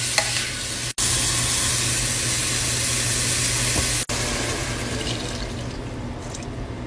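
Water pours into a hot pan with a loud hiss.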